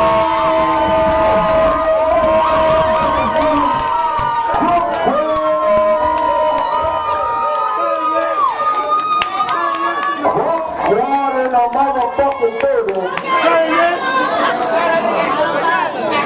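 Loud music with a singing voice plays through speakers.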